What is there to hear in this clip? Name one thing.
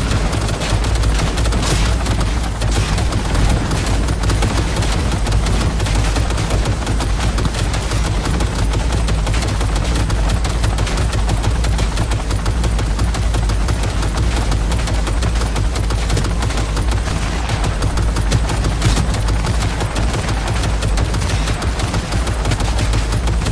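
A heavy gun fires in rapid, continuous bursts.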